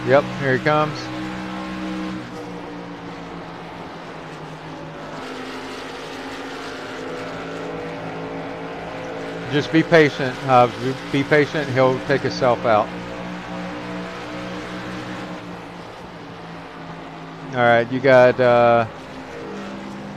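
Racing truck engines drone steadily at speed.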